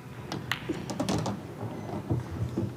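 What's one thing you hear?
Pool balls clack against each other and roll on the table.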